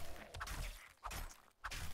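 A knife stabs into flesh with a wet thud.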